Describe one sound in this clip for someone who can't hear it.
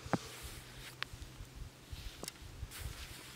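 Dry wood sticks knock and click as they are handled.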